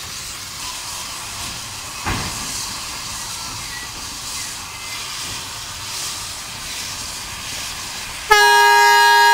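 Steam hisses loudly from a locomotive close by.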